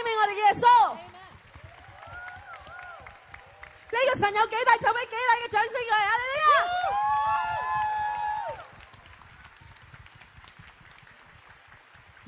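A group of people claps hands in rhythm.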